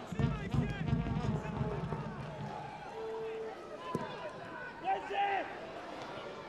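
A large stadium crowd murmurs and cheers from the stands.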